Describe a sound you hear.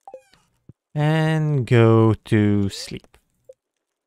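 A bright musical game jingle plays.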